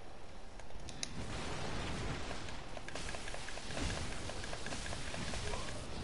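Swords clash and swing in a fight.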